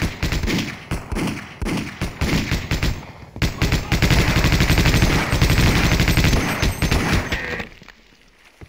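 A machine gun fires rapid, loud bursts.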